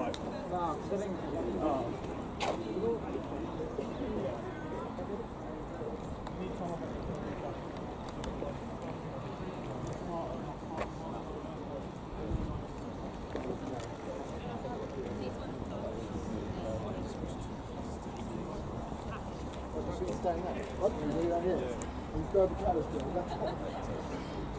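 People call out and cheer outdoors at a distance.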